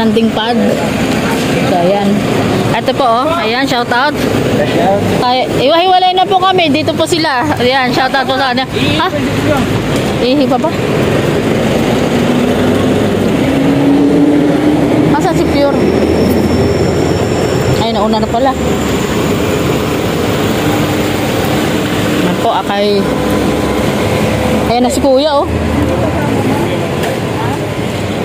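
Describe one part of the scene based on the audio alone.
Several adults talk and call out close by.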